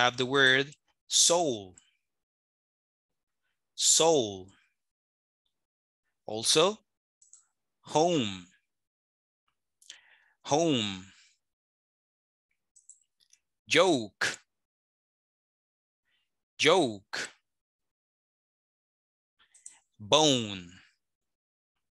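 A man pronounces single words slowly and clearly over an online call, with pauses between them.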